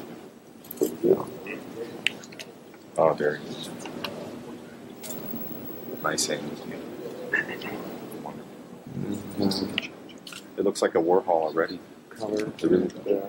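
A man talks into a microphone in a lively, conversational way.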